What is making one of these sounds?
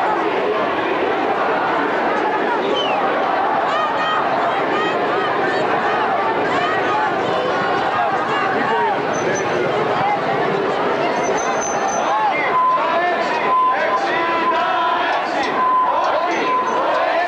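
A large crowd of men and women chants and talks loudly outdoors.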